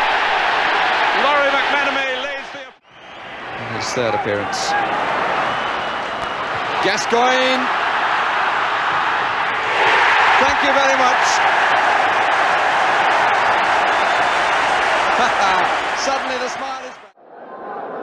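A large stadium crowd roars loudly.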